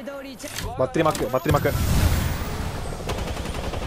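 Explosions crackle and boom.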